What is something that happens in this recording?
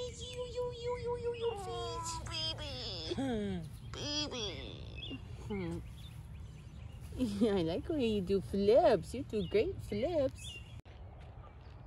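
A cat meows loudly and repeatedly close by.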